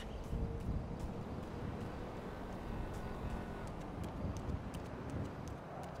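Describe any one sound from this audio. A man's bare feet patter quickly on grass as he runs.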